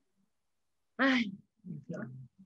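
A woman exclaims in a high voice over an online call.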